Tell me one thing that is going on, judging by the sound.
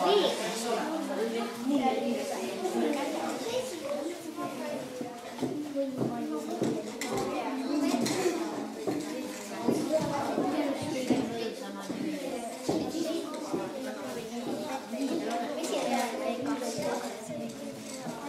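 Children chatter and talk nearby.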